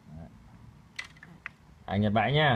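A fishing reel clicks softly as a hand handles it.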